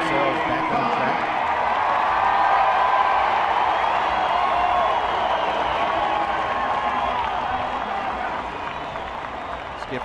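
A large crowd cheers and claps loudly outdoors.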